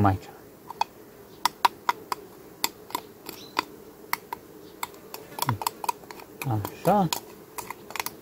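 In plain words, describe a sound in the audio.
A spoon clinks against a glass jar while stirring.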